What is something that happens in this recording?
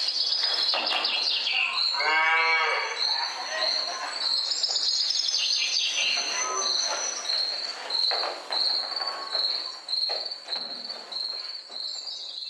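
Wooden barrels roll and thump across a stage floor.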